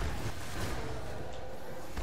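Fireballs whoosh and burst.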